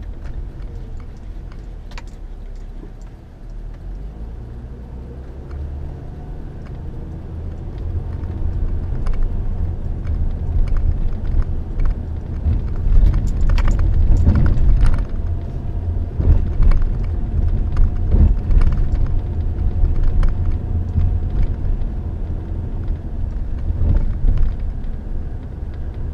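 A car engine rumbles low and steady from inside the car, growing louder as the car gathers speed.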